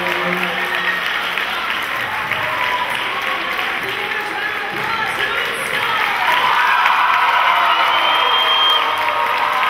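A woman speaks with animation through a microphone and loudspeakers in a large hall.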